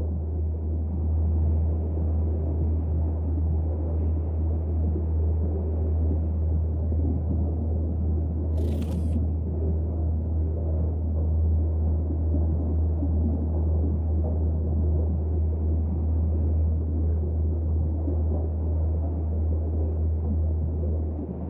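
Deep water rumbles in a low, steady, muffled drone, as if heard underwater.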